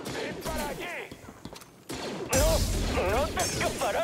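A blaster fires a laser bolt with a sharp zap.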